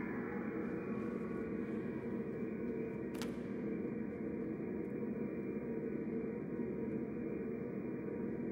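An orchestra plays a sustained, steady passage.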